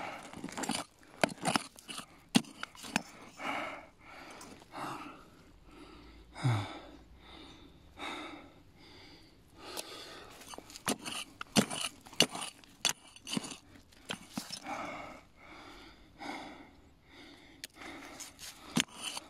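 Loose soil and pebbles patter and rattle as they are tossed aside.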